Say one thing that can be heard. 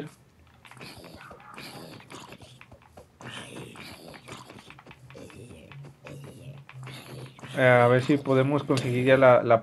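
A zombie groans nearby.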